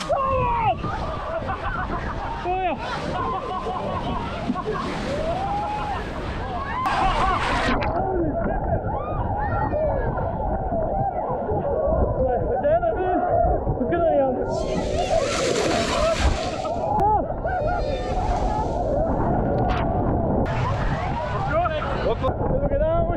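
Waves splash and crash around people wading in the sea.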